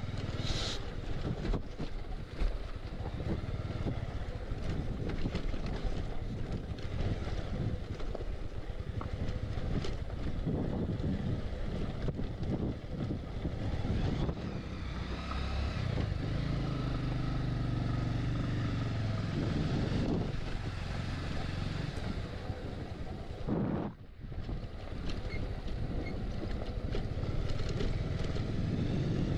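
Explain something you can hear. Tyres crunch over a rough gravel track.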